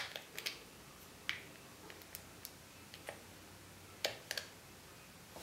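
Plastic buttons on a game controller click softly.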